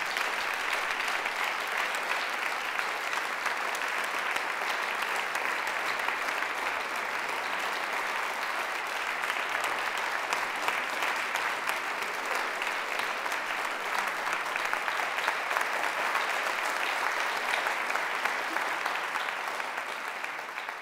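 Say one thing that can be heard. A large audience applauds steadily in a hall.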